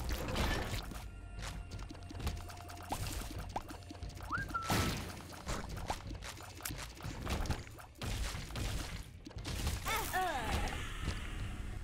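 Rapid popping shots and squelching splats ring out.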